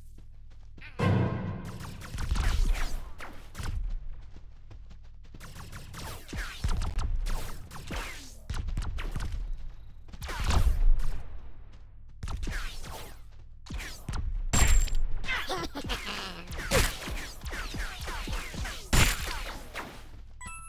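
A gun fires energy blasts again and again.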